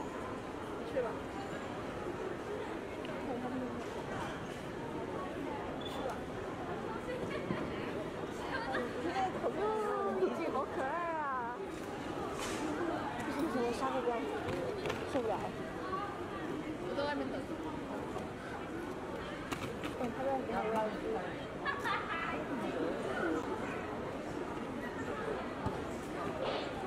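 Young women chat.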